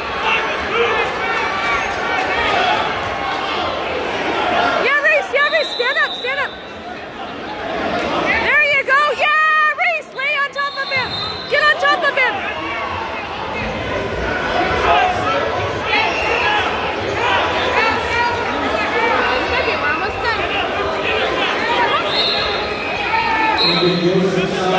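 A crowd of spectators talks and shouts in a large echoing gym.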